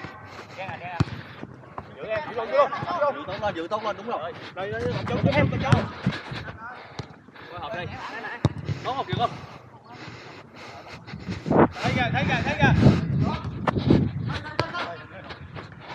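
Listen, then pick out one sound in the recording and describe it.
A football is kicked on artificial turf.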